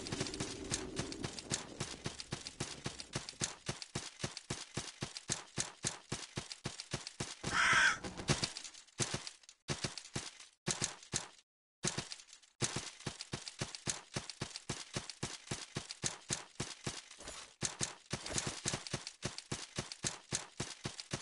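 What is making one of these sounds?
Quick footsteps tap steadily across hard ground.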